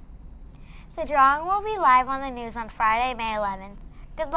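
A young girl speaks clearly into a microphone.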